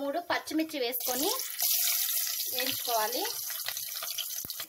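Green chillies drop into hot oil and sizzle loudly.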